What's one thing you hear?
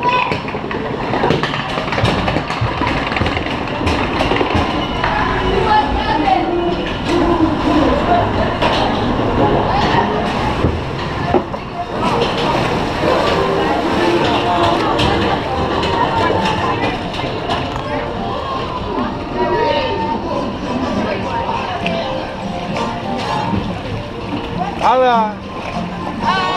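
Water rushes and splashes along a channel close by.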